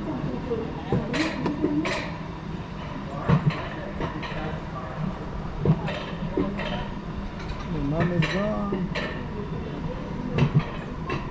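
A coaster cart rumbles steadily along metal rails.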